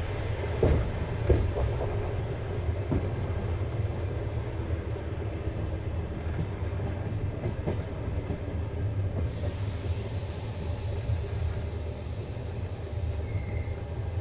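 A train rumbles steadily along the rails, heard from inside a carriage.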